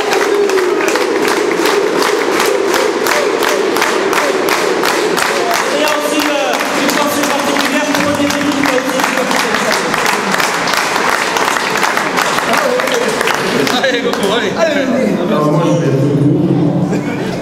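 A crowd of men chants and cheers loudly.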